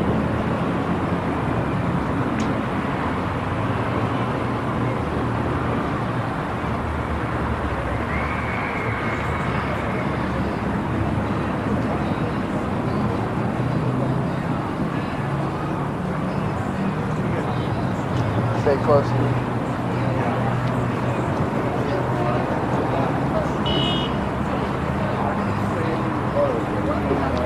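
Steady wind rumbles outdoors against a microphone.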